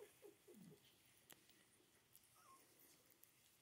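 Young puppies whimper and squeak softly close by.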